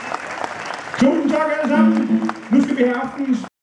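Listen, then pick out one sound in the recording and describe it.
A man sings into a microphone, heard over loudspeakers.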